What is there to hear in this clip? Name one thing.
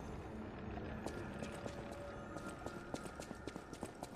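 Footsteps patter quickly on a stone floor in an echoing hall.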